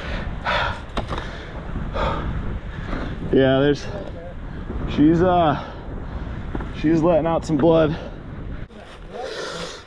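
Bike tyres crunch and skid over dirt and dry leaves.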